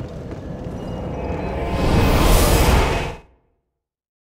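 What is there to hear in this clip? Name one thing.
A rushing whoosh swells loudly and then cuts off abruptly.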